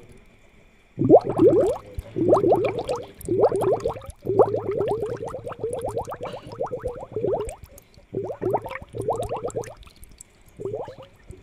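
Air bubbles burble and gurgle in water in short bursts.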